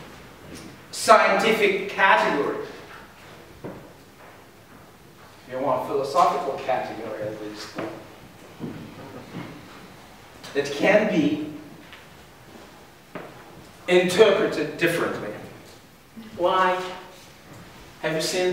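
A middle-aged man lectures with animation, speaking in short bursts with pauses.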